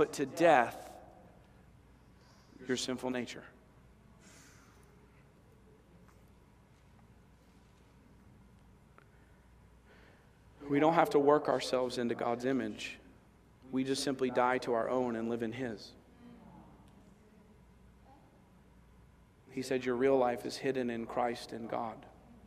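A man speaks with animation through a microphone in a large room, pausing between phrases.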